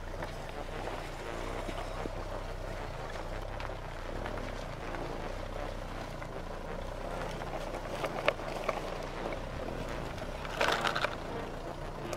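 A plastic toy truck scrapes across sand.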